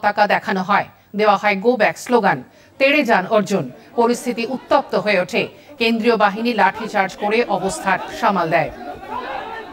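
A man speaks loudly and with animation, close by.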